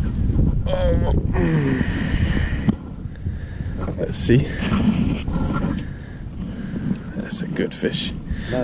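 Wind rumbles outdoors on open water.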